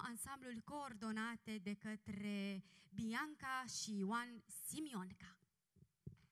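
A young woman speaks into a microphone over loudspeakers, announcing with animation.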